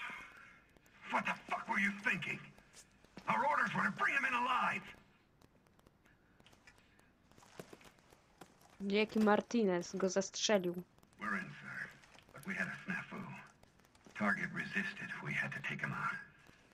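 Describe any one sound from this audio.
A man speaks tensely, his voice muffled through a gas mask, close by.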